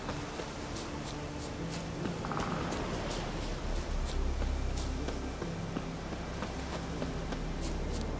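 Footsteps crunch quickly on a dirt path.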